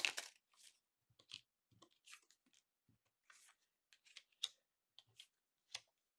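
Playing cards are laid down with soft taps.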